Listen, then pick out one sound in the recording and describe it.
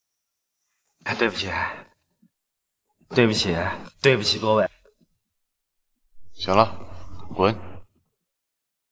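A young man apologises in a raised, urgent voice.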